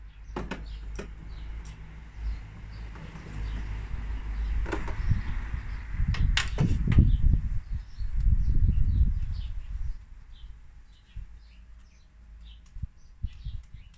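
Small plastic and metal parts click and knock under a man's hands.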